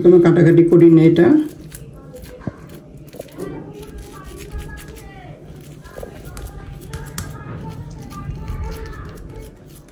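Hands pat and press a soft, wet paste with quiet squishing sounds.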